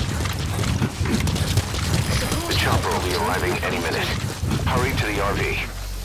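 Footsteps crunch quickly over dirt and grass.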